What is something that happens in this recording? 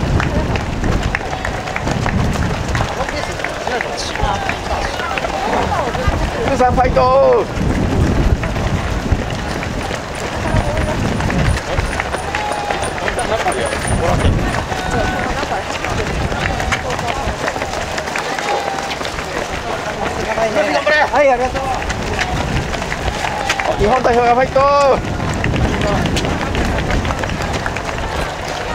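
A crowd of spectators cheers and shouts nearby outdoors.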